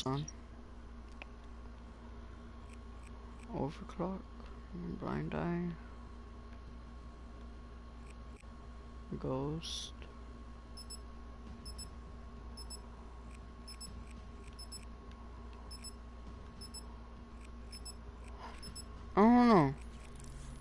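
Soft menu blips click as a selection changes.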